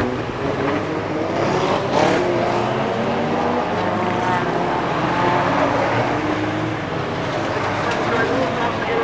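Racing car engines roar and whine as the cars speed around a track.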